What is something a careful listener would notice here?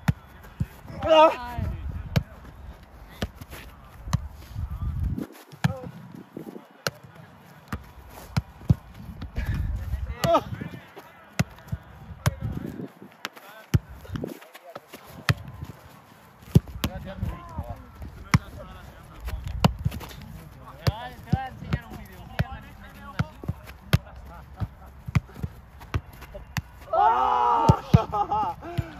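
A football thumps off a player's foot and head again and again.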